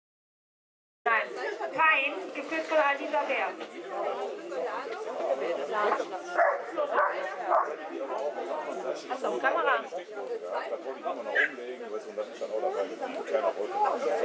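A woman talks to a dog with animation, outdoors.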